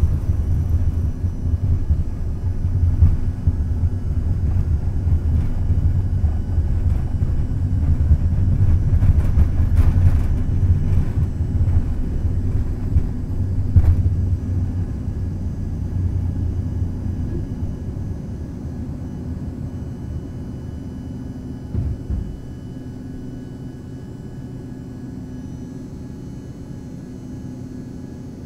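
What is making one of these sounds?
Jet engines roar steadily, close by.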